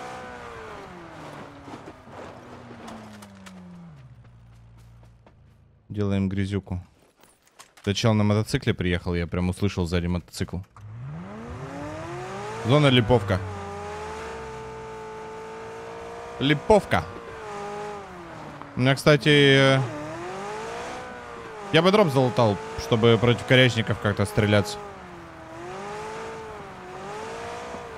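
A car engine hums and revs as it drives.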